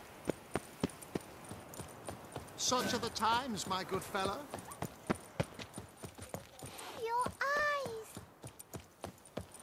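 Footsteps run on cobblestones.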